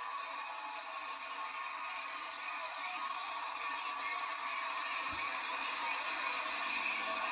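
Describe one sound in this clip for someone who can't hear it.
A crowd cheers and screams loudly in a large arena, heard through a loudspeaker.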